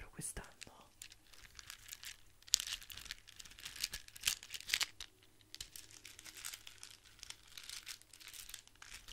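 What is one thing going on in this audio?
Fingers tap and scratch on a beaded object close to a microphone.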